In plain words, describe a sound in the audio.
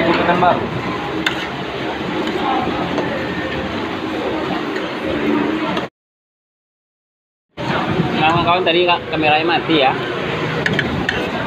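Metal spoons and forks clink against plates.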